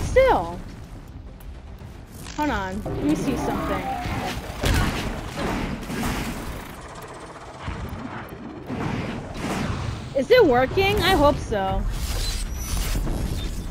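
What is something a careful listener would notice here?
A robotic creature chirps and whirs with sharp electronic calls.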